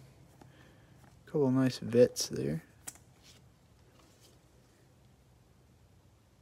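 A plastic card sleeve crinkles softly as it is handled.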